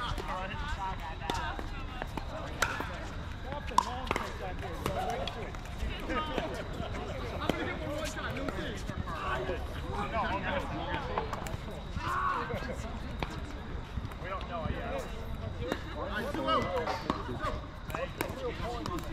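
Paddles strike balls with sharp hollow pops across open courts.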